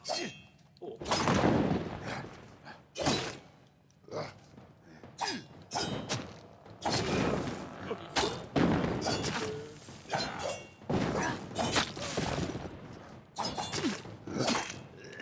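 Swords clash and strike with sharp impacts.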